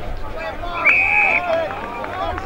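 A referee's whistle blows one short, sharp blast.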